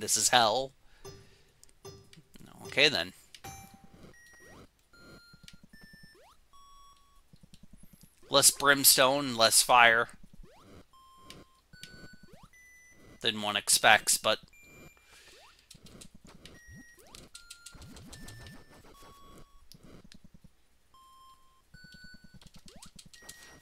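Retro video game sound effects beep and blip in short bursts.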